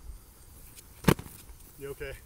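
A foam sword smacks against a shield with a sharp thwack.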